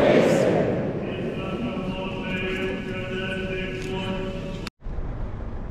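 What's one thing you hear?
A man chants in a sung, drawn-out voice in a large echoing hall.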